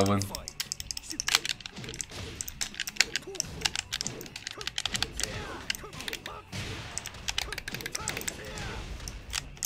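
Punches and kicks land with sharp, rapid smacks and bursts in a fighting game.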